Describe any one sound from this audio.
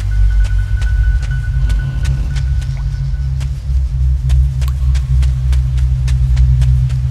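Footsteps crunch steadily over rubble and wooden boards.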